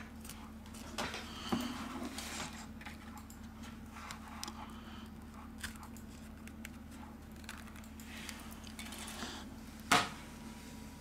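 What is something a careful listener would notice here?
A plastic pry tool scrapes and clicks along the edge of a phone.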